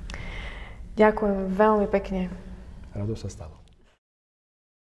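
A woman speaks warmly.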